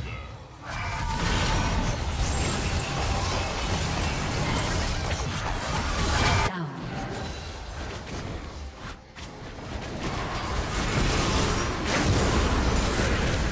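Magic blasts whoosh and crackle in a busy battle.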